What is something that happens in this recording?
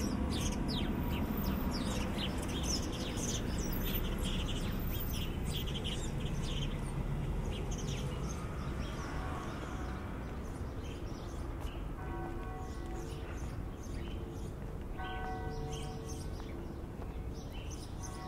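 City traffic rumbles steadily in the distance.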